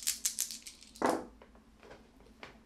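Dice tumble onto a soft mat.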